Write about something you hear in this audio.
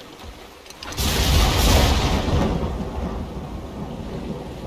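A wooden boat scrapes and splashes into a river.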